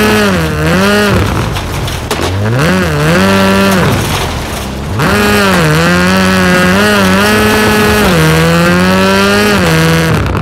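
Tyres skid and scrabble on loose gravel.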